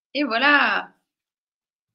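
A woman speaks briefly and expressively over an online call.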